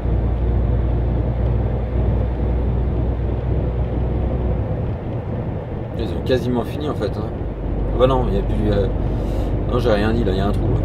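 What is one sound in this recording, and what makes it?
Tyres roll on a motorway.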